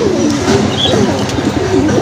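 A pigeon flaps its wings briefly.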